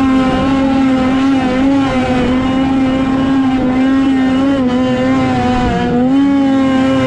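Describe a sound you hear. A snowmobile engine drones loudly and steadily, its pitch wavering slightly.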